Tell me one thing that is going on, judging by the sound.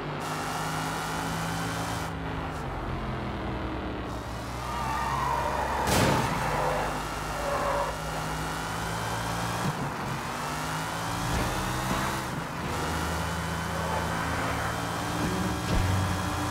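A sports car engine revs hard and changes gear repeatedly.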